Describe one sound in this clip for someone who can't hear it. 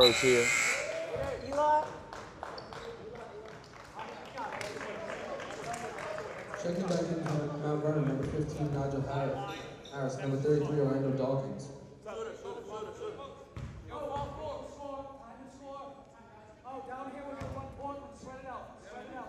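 Young men shout and call out in an echoing gym.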